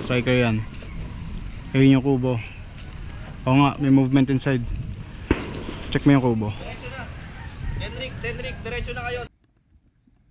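A man speaks loudly and urgently close by.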